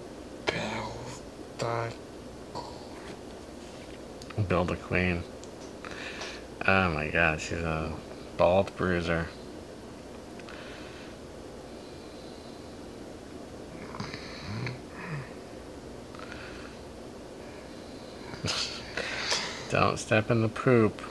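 A middle-aged man talks calmly nearby, in bursts with pauses.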